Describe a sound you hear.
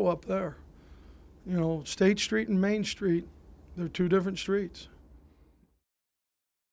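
A middle-aged man speaks calmly into a microphone.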